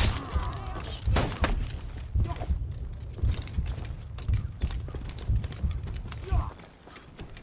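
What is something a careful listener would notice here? Heavy weapons clash and thud in a fight.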